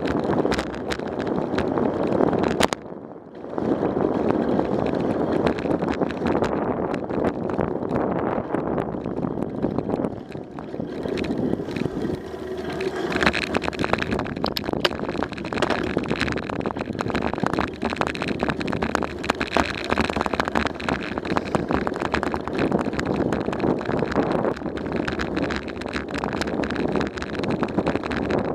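Bike tyres crunch and rattle over a dirt and paved trail.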